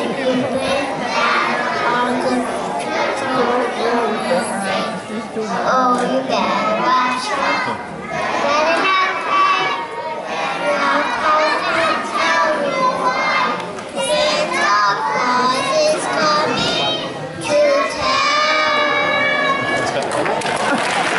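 Young children sing close to a microphone.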